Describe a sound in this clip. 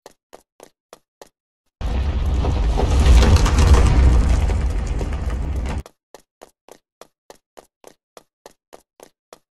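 Quick game footsteps patter as a figure runs.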